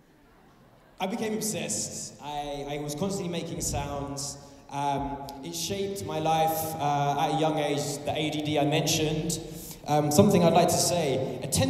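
A man speaks with animation through a microphone and loudspeakers in a big echoing hall.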